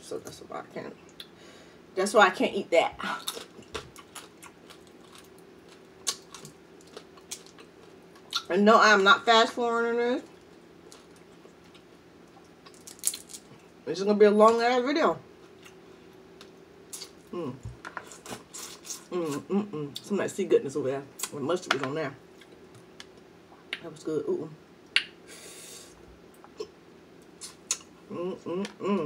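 Crab shells crack and snap between fingers.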